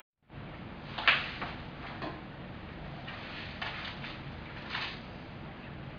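Paper pages rustle as a book is handled.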